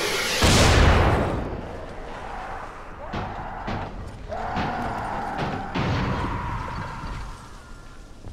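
Flames roar and crackle, then fade.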